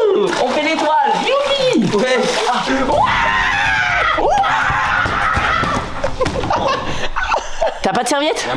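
A young man shouts and yells with excitement close by.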